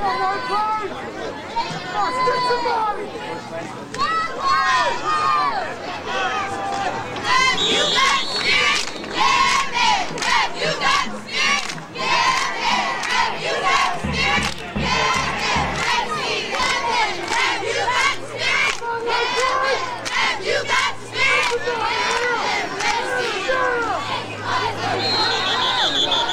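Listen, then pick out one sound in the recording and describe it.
A crowd of players and spectators shouts and cheers outdoors.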